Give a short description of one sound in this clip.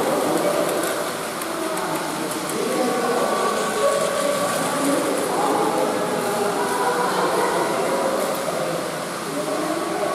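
Toy trains whir along plastic tracks.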